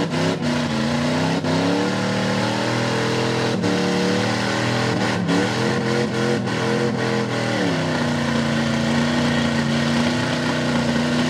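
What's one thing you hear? Mud splashes and sprays from spinning tyres.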